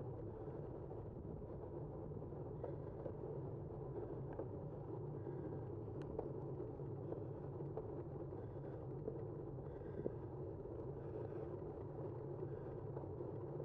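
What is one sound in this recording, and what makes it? Tyres hum steadily on a smooth road as a vehicle rolls along.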